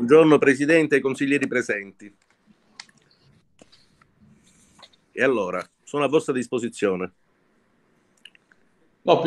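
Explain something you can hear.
A middle-aged man talks calmly over an online call, pausing between phrases.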